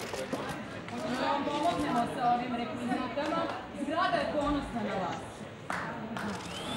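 A woman speaks close by.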